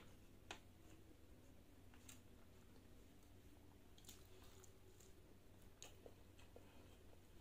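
A woman chews food with wet smacking sounds close to a microphone.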